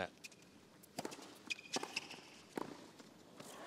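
A tennis ball is struck sharply by rackets.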